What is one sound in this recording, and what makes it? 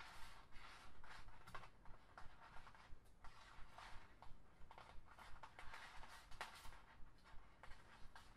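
Plastic strips click and snap against each other.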